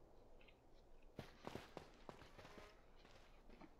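Footsteps patter quickly across sandy ground.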